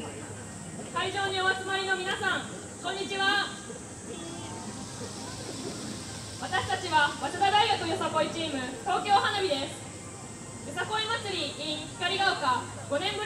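A group of young women chant loudly in unison outdoors.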